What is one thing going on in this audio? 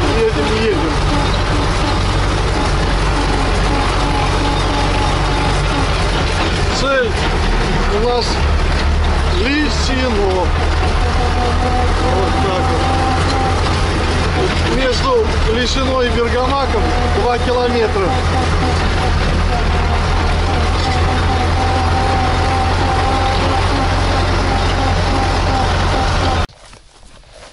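A tractor engine drones loudly and steadily from inside the cab.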